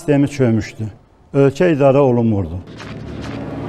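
An elderly man speaks with animation close to a microphone.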